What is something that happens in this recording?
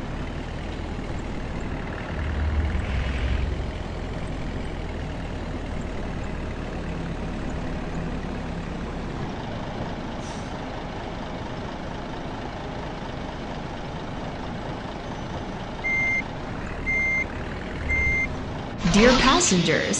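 A bus engine hums steadily at low speed.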